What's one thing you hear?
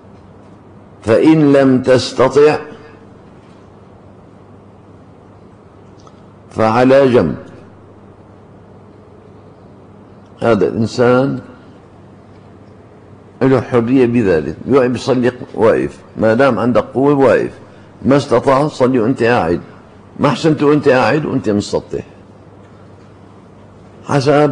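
An elderly man speaks calmly into a microphone in bursts, with pauses between phrases.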